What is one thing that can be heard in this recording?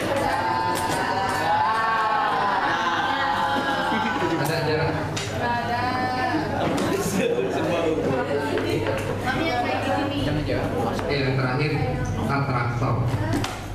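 A man speaks with animation through a microphone and loudspeaker in an echoing room.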